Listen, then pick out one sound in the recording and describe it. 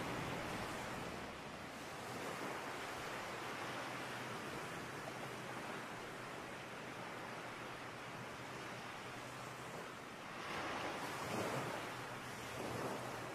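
Small waves wash gently onto a sandy shore.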